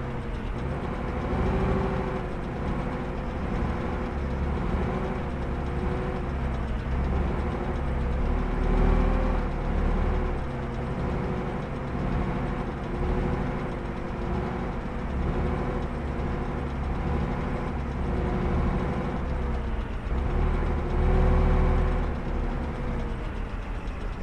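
Tank tracks clatter on the road.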